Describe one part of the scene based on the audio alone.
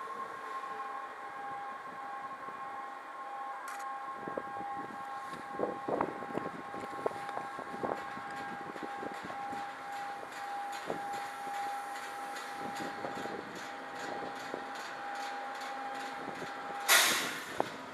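A train rolls slowly past with a steady electric whine.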